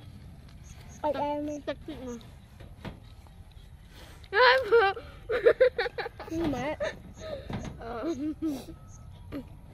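Young girls talk and laugh close by.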